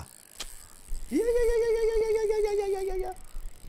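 A young man exclaims loudly and excitedly into a nearby microphone.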